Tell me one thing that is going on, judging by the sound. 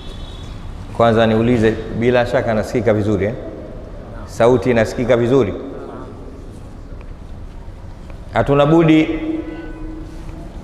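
A man speaks slowly and with emphasis into a microphone, in bursts with pauses.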